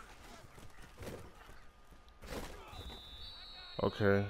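Football players crash together in a tackle.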